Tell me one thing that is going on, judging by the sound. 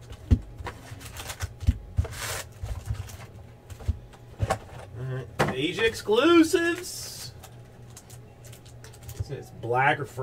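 Foil card packs rustle and crinkle as they are handled.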